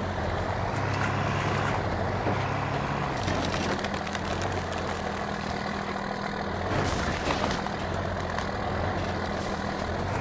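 Tyres crunch and bump over rough dirt.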